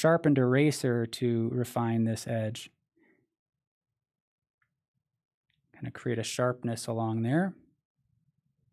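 A man speaks calmly and close into a microphone.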